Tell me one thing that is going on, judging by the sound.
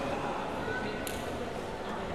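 A racket strikes a shuttlecock with a sharp pop.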